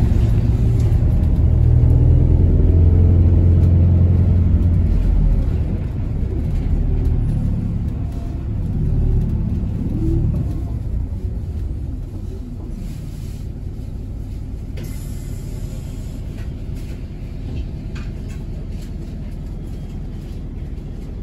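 A car engine hums low while driving, louder at first and then quieter as the car slows.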